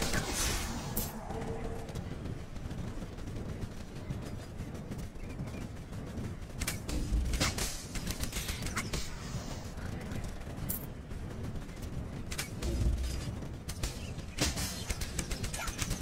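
Game combat sounds clash and thud.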